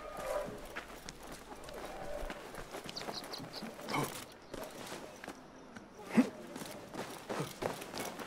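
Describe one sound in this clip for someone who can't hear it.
Footsteps patter quickly across a rooftop.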